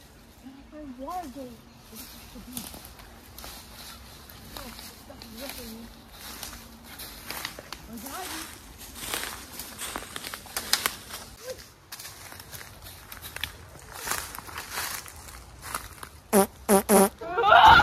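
Footsteps crunch through dry leaves and brush.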